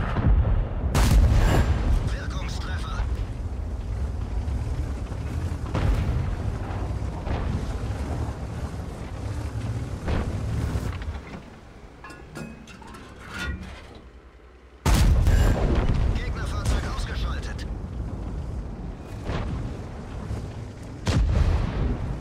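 A tank cannon fires with a loud, sharp boom.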